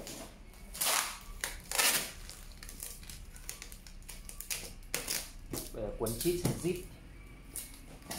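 Packing tape rips and screeches off a roll.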